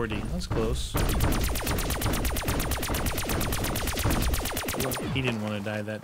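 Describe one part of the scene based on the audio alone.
A rapid-fire gun shoots a long burst.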